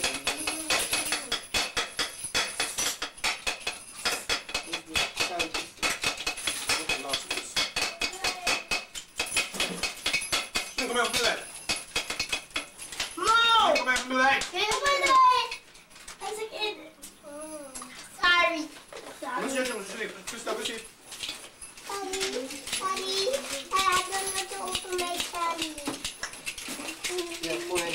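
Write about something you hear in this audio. Children talk and call out excitedly close by.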